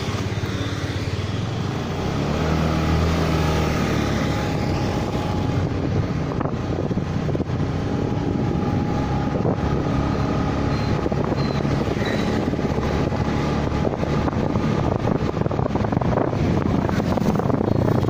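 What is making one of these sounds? Another motorbike passes close by.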